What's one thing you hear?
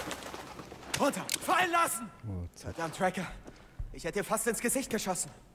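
A young man speaks urgently, close by.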